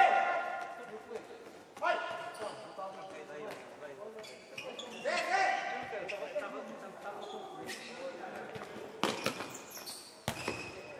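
Sports shoes squeak on a hard court.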